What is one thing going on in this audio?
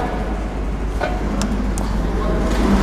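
A plastic connector clicks and rattles under a hand.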